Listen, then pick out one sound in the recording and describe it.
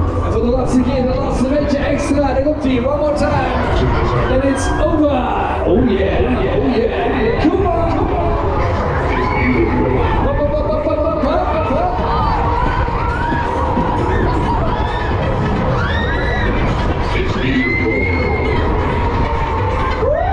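A fairground ride whirs and rumbles as it spins.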